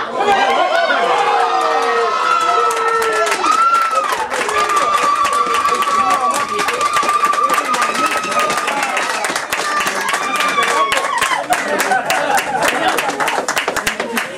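Spectators clap their hands rapidly.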